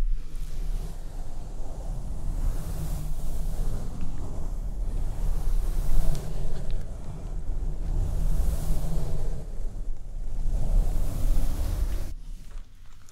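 A soft brush sweeps back and forth across a microphone up close, with a steady rustling.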